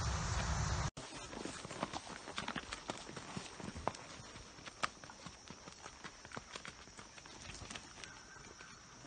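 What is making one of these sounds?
Hooves clop and crunch along a gravelly path.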